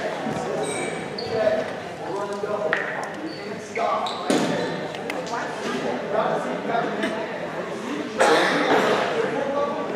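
Young women chatter and shout in a large echoing gym.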